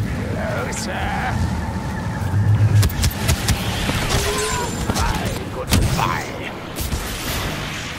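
A lightsaber hums and swings with sharp whooshes.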